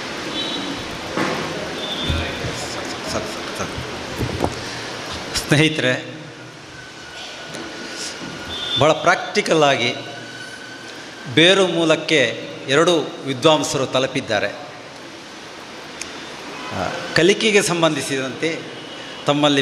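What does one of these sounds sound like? An elderly man speaks over loudspeakers in an echoing hall, with pauses.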